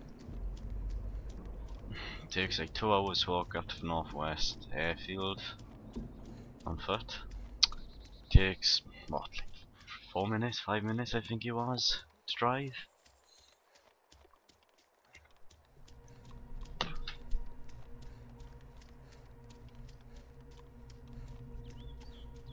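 Footsteps swish through grass at a steady walking pace.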